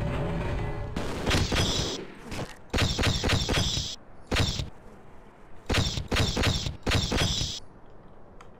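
Automatic gunfire rattles in short, rapid bursts.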